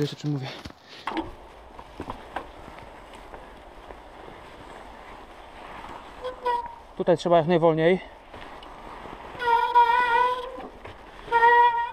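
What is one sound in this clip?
Bicycle tyres roll and crunch over snowy ground.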